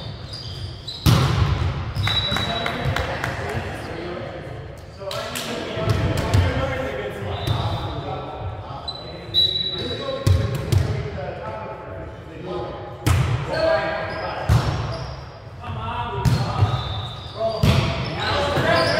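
Young men call out and shout to each other in a large echoing gym.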